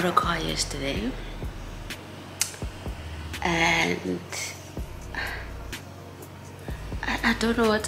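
A young woman talks casually and close to a microphone.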